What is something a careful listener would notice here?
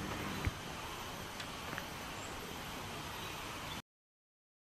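Soft outdoor background noise hums steadily.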